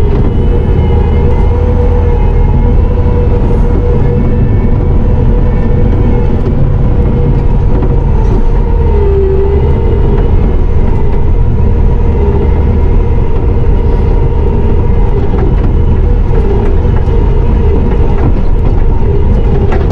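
A skid steer loader's diesel engine roars steadily from inside the cab.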